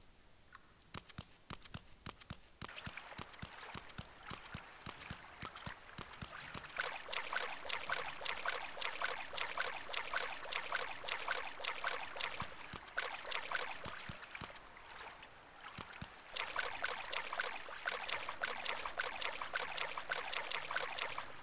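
Footsteps crunch steadily on icy ground.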